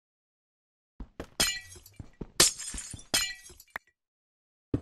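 Glass shatters with a sharp, bright crash.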